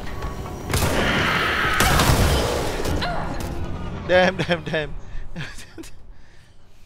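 Loud gunfire and explosions crash and then fade away.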